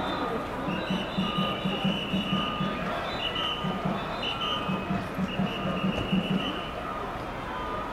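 A crowd of young people talks and calls out nearby outdoors.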